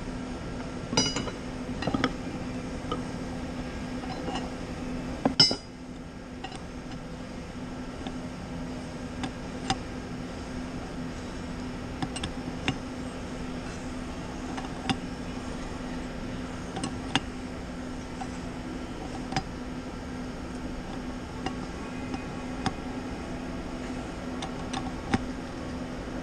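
Metal tools clink and tap against metal parts.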